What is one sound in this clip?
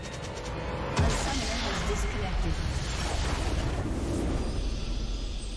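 A loud magical explosion bursts and rumbles.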